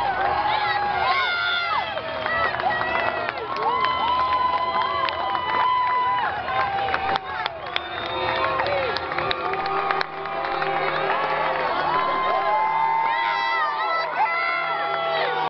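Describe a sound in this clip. A large crowd cheers and shouts in an open stadium.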